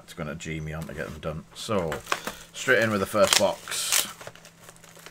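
Plastic wrapping crinkles as hands tear open a card pack.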